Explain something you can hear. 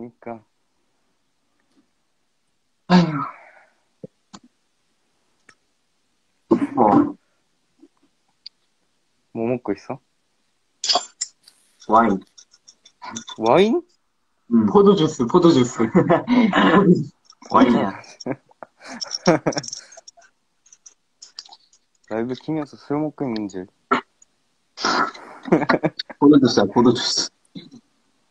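A young man talks casually over an online call.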